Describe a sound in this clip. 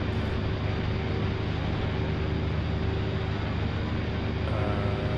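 A helicopter engine roars steadily with a loud rotor drone.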